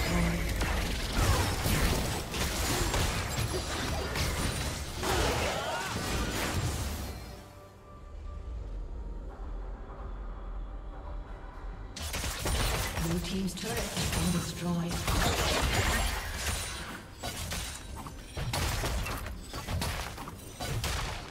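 Fantasy battle sound effects crackle, whoosh and boom rapidly.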